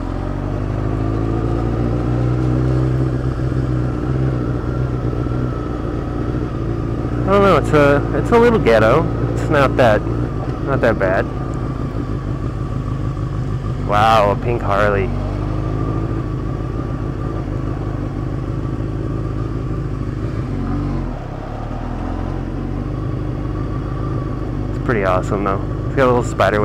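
A motorcycle engine hums steadily as it rides slowly along.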